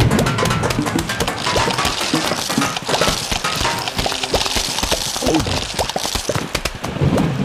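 Game music plays throughout.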